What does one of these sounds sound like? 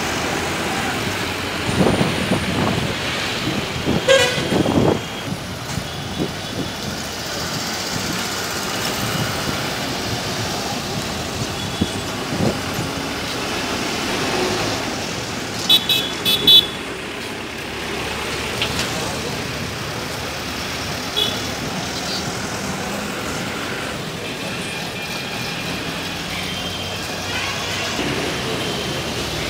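Buses and cars drive past on a busy street.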